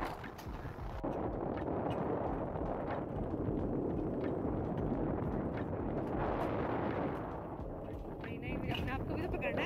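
A coaster sled rumbles and rattles along metal rails.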